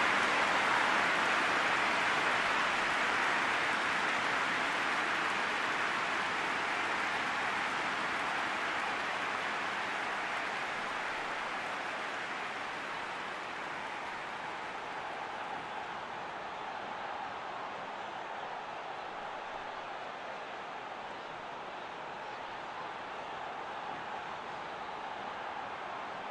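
A large stadium crowd roars steadily, slowly growing quieter.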